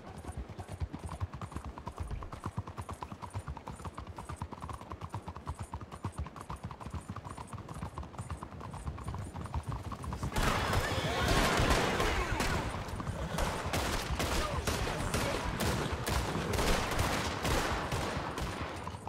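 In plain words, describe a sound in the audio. A horse's hooves clatter quickly on cobblestones.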